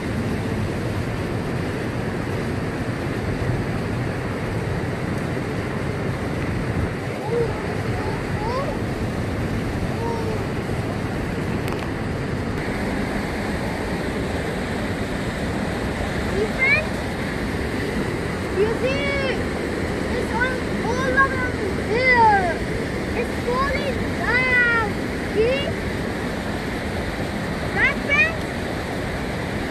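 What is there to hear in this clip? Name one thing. A river rushes and splashes over rocks outdoors.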